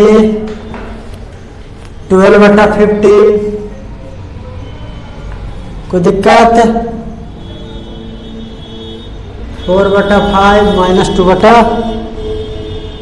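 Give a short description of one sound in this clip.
A young man speaks calmly and clearly, explaining in bursts with pauses.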